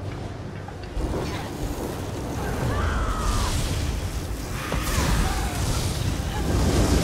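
Electric spells crackle and zap.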